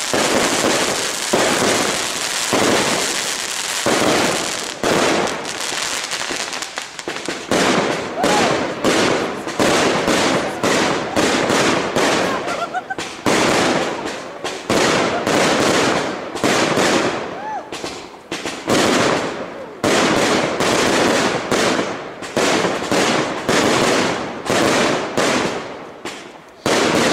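Fireworks burst with loud, rapid bangs and crackles.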